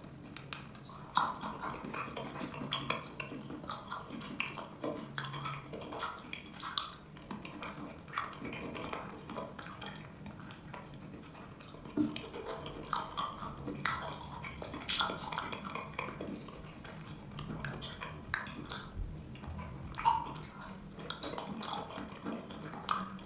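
A woman eats thick, creamy food close to a microphone, with wet smacking and squishing mouth sounds.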